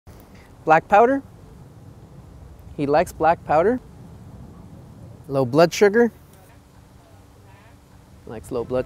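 A woman speaks calmly close by, in short phrases.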